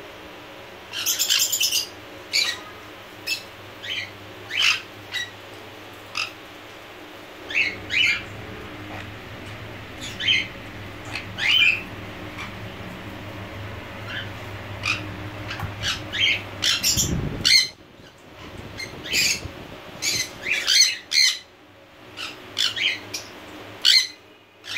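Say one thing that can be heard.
Parakeets chirp and squawk in short, sharp bursts close by.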